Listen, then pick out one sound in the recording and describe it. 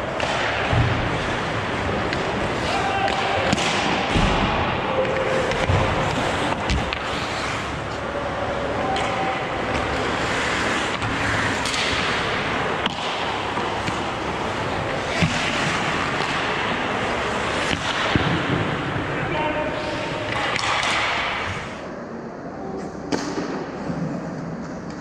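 Skate blades scrape and hiss across the ice in a large echoing rink.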